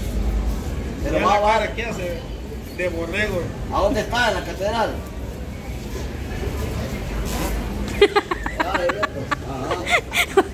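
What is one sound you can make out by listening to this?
A middle-aged man speaks with animation into a phone close by.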